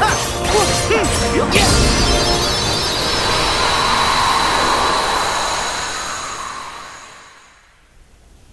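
A magic spell bursts with a whoosh and sparkling chimes.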